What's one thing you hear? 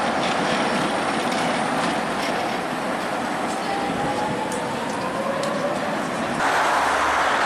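A car drives slowly through a junction.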